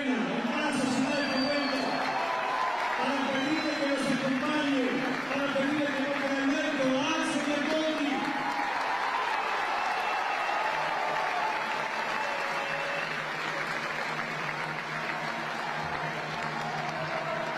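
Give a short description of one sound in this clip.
A man speaks loudly and with animation into a microphone over loudspeakers.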